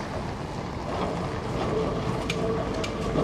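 Steel wheels squeal on the track.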